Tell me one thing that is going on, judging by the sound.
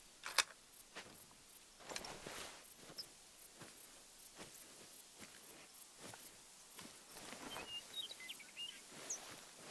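Footsteps tread steadily on grass.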